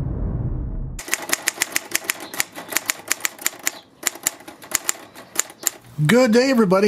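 A typewriter's keys clack rapidly.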